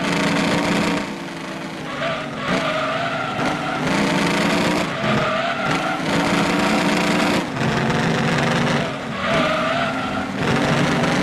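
A V8 race car engine drops in pitch as it shifts down for corners.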